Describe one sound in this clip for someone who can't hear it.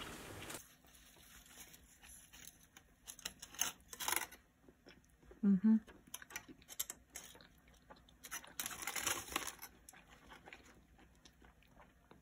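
A young woman bites and chews a burger close to a microphone.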